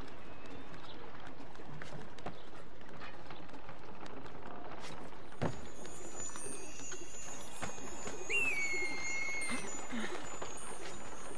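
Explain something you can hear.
Hands grab wooden beams with soft knocks while climbing.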